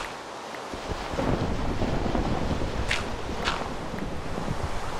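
A shovel digs into gravel and dirt with crunching thuds.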